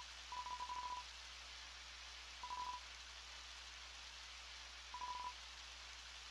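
Quick electronic beeps chatter in short bursts.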